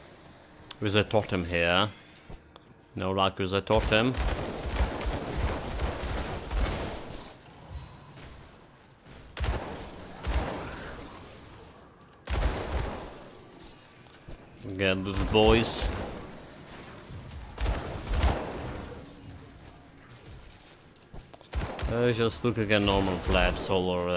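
Magic spells crackle and burst in a video game battle.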